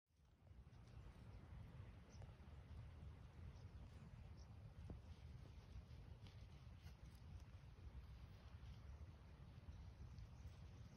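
Hands rustle through soil and leafy plants.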